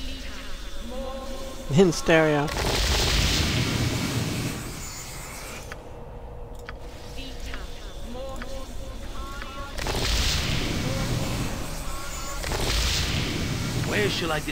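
Magical healing spells whoosh and shimmer again and again.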